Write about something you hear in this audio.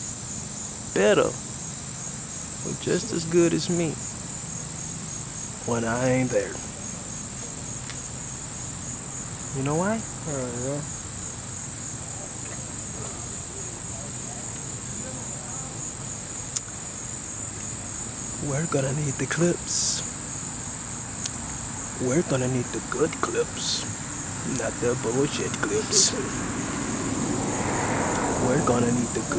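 A man talks close up, in short animated bursts.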